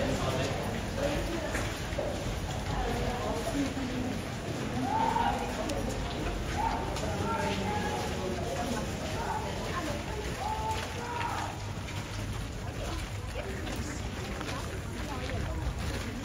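A crowd of men, women and children chatters nearby in an echoing archway.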